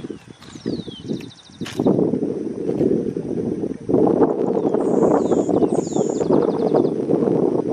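A small bird chirps in short, high bursts close by.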